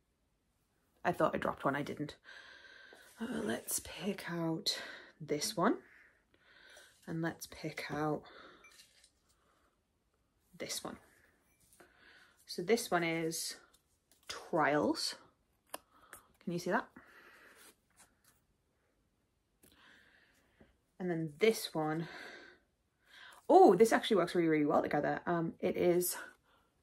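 A young woman talks casually and close to the microphone, in short bursts with pauses.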